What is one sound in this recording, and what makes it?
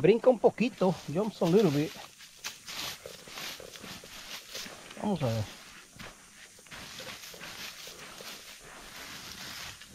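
A gloved hand rustles through dry pine needles and leaves.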